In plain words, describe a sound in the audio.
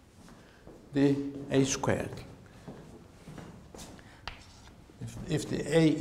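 An elderly man lectures with animation.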